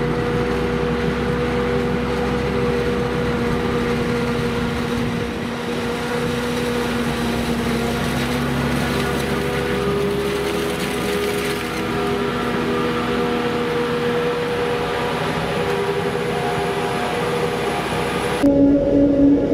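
A forage harvester's engine roars steadily close by.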